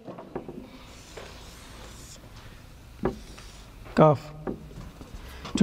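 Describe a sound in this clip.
A marker squeaks and scrapes on a whiteboard.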